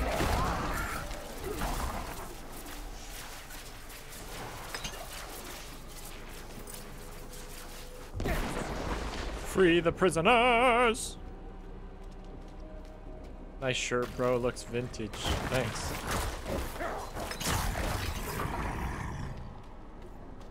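Game combat sounds clash and crackle.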